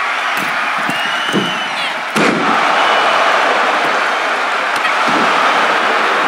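Bodies thud heavily onto a wrestling mat.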